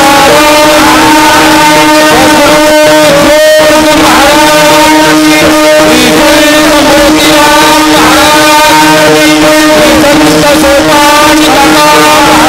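A young man sings loudly into a microphone through a loudspeaker.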